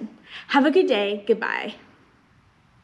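A woman speaks cheerfully and close to a microphone.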